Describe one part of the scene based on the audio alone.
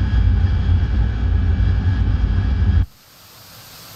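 A jet engine rumbles deeply and steadily from inside a cockpit.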